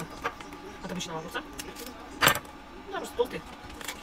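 A knife cuts through a crisp cucumber.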